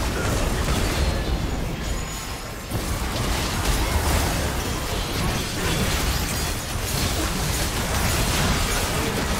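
Rapid magical blasts, whooshes and impacts crash over one another in a busy fight.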